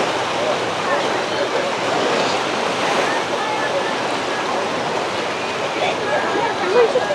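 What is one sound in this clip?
Many voices of bathers chatter and call out outdoors.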